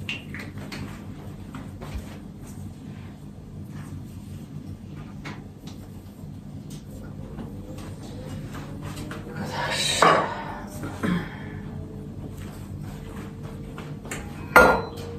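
Kitchen utensils clink and knock on a countertop.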